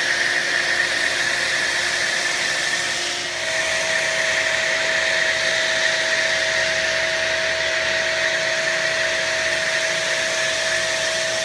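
A foam sprayer hisses steadily as it sprays thick foam.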